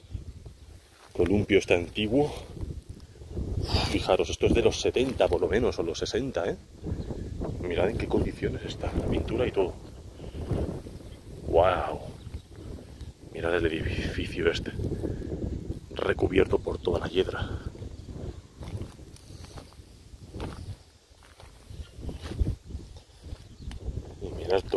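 Footsteps rustle through thick weeds.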